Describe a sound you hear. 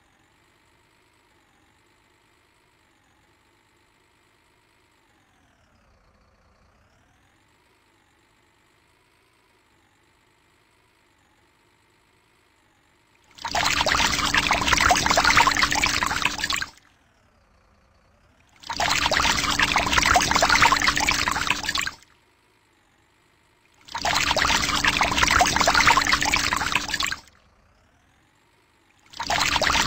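A truck engine hums steadily, its pitch rising and falling.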